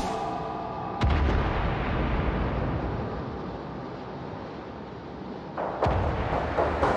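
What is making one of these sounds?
Heavy naval guns fire with deep booming blasts.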